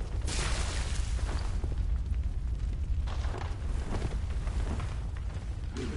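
Footsteps crunch over ground.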